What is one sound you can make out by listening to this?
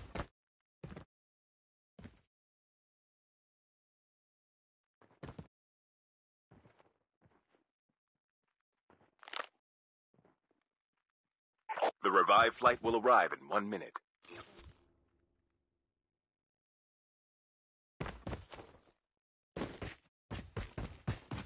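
Footsteps crunch on dirt and gravel at a running pace.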